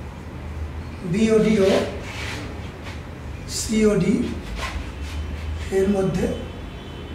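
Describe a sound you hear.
A man speaks slowly and calmly.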